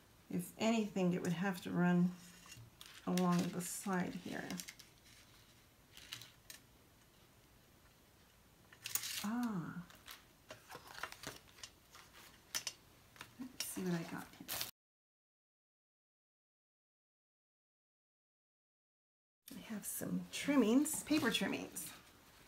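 A woman talks calmly, close by.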